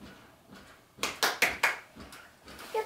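A woman claps her hands several times.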